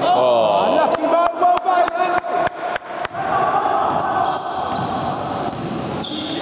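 A basketball bounces on a wooden floor, echoing around a large hall.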